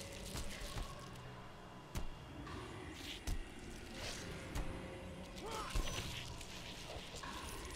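Magic spells crackle and chime during a fight.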